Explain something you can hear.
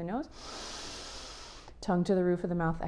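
A young woman breathes in deeply.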